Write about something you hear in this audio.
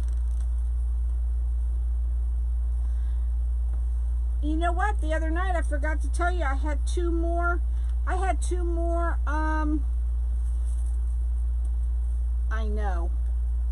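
Stiff mesh ribbon rustles softly as hands handle it.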